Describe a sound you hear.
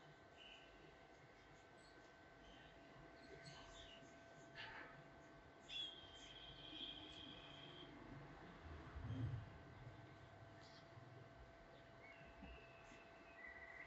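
Fingers rub and rustle through hair close by.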